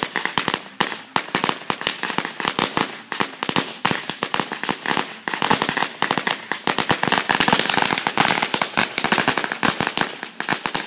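Firecrackers pop and crackle rapidly outdoors.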